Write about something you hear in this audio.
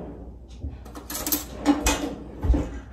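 Metal cutlery clatters in a drawer.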